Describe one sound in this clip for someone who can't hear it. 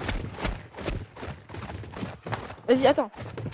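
Heavy footsteps thud quickly on a hard floor.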